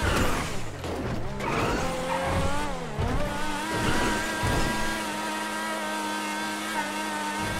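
A race car engine roars at high speed, its pitch climbing and dropping as it shifts gears.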